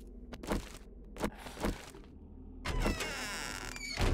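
A metal door swings open.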